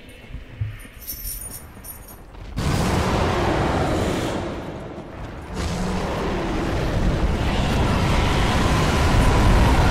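Armoured footsteps run over stone.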